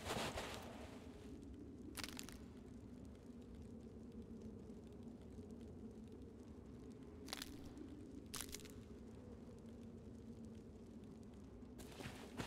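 Dry bones rattle and clatter softly.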